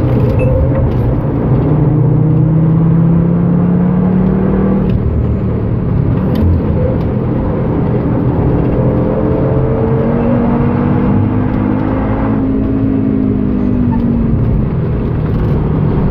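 A car engine roars loudly, revving up and down as it races.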